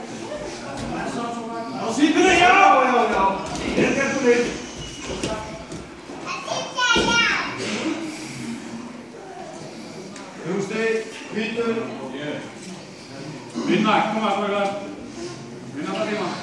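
Several people shout encouragement in a large echoing room.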